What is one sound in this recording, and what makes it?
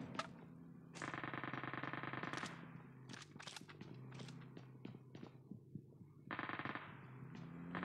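An automatic rifle fires rapid bursts at close range.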